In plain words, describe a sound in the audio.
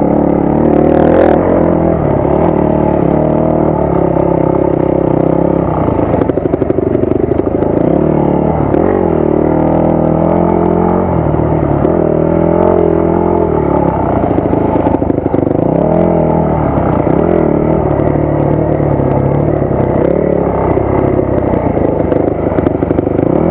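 A dirt bike engine roars up close, its pitch rising and falling as the throttle changes.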